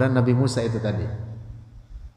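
A young man speaks calmly into a headset microphone.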